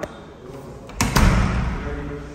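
A door handle clicks as a door opens.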